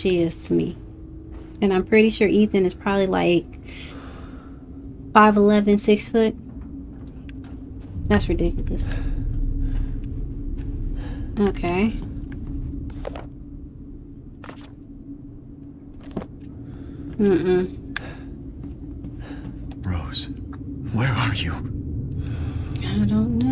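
A young woman speaks calmly and close to a microphone, in short bursts.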